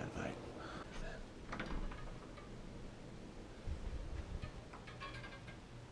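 A door latch clicks open.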